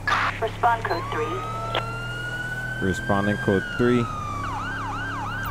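A police siren wails, rising slowly.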